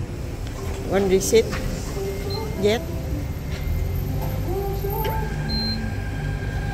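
A fuel pump keypad beeps as a button is pressed.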